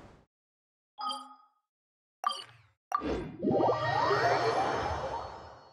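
Bright game menu chimes ring and swell into a shimmering tone.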